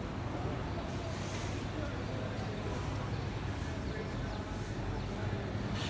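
Distant voices murmur.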